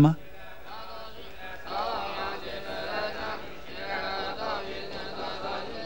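An elderly woman speaks nearby.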